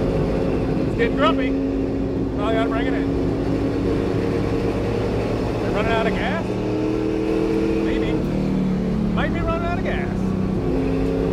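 Tyres squeal in short bursts as a car slides through turns.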